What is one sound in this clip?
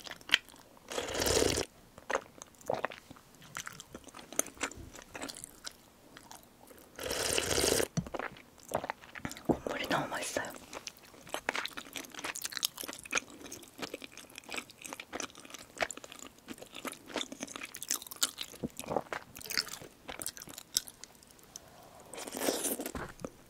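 A young woman slurps soup loudly from a bowl up close.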